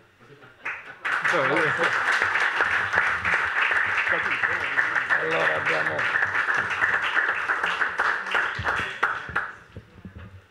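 A crowd applauds in a room.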